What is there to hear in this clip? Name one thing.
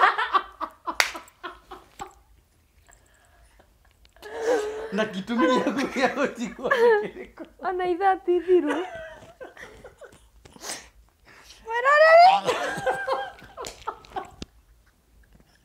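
A young woman giggles behind her hand.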